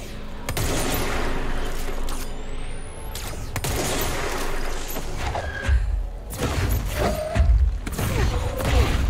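Debris clatters and crashes around.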